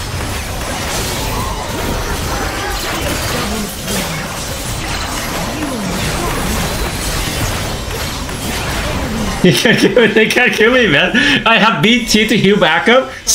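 Game spell effects and impacts crackle and boom.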